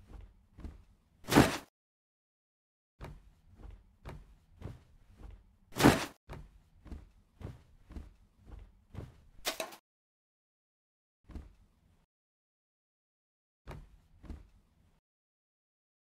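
Footsteps thud across a wooden floor at a walking pace.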